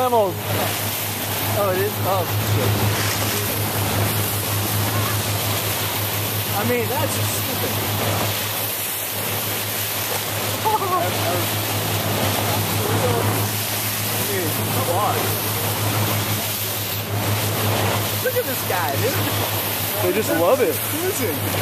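Dolphins splash as they break the surface.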